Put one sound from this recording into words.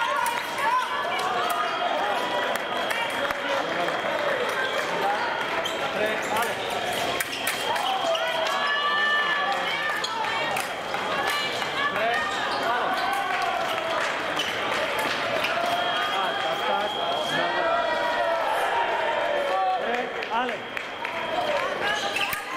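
Sneakers squeak on the floor as fencers lunge.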